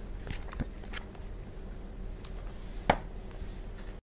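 Book pages rustle and turn.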